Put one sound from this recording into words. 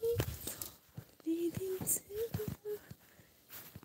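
Dogs yelp and whine nearby.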